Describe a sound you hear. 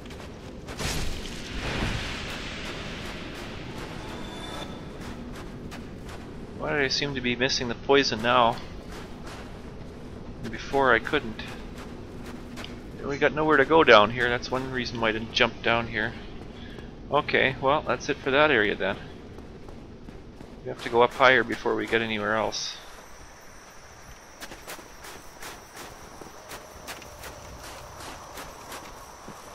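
Quick footsteps patter on stone.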